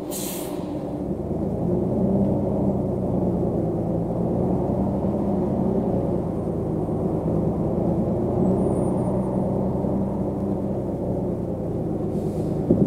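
A bus engine grows louder as the bus pulls away.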